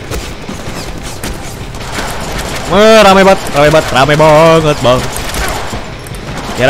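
Video game combat sounds of blows and slashes play.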